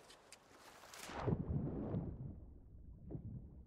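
Water splashes loudly as a swimmer plunges in.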